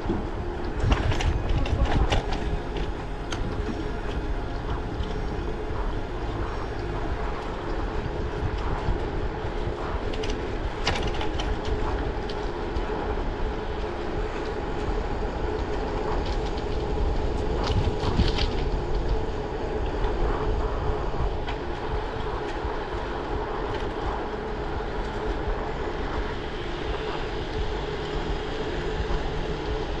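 Bicycle tyres roll over a paved road.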